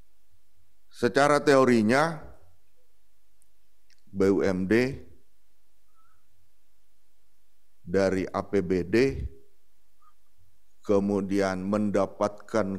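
A man speaks formally into a microphone, with long pauses.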